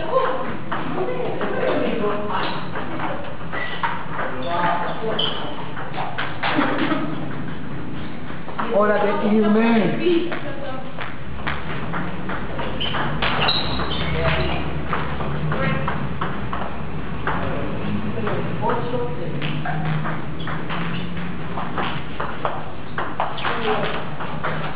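A ping-pong ball clicks rapidly back and forth off paddles and a table in an echoing hall.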